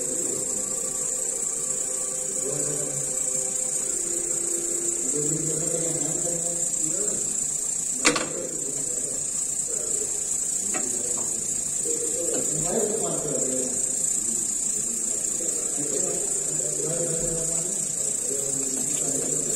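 A knife scrapes against a metal plate.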